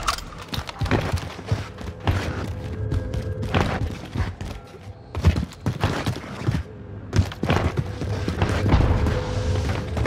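Footsteps thud quickly on hard floors.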